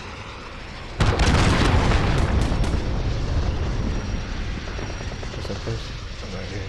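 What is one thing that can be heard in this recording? An explosion booms nearby and rumbles away.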